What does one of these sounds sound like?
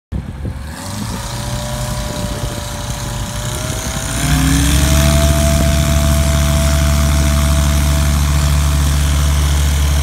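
A floatplane's propeller engine roars nearby, rising in pitch and growing louder as it speeds up.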